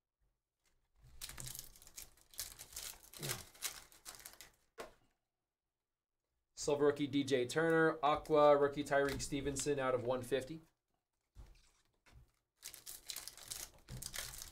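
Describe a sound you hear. A foil card pack crinkles and tears as it is opened.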